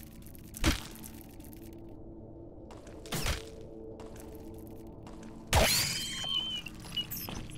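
Sharp blows strike a creature in a fight.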